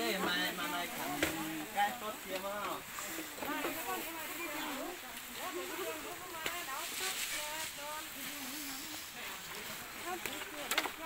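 Men and women talk at once nearby, with animation.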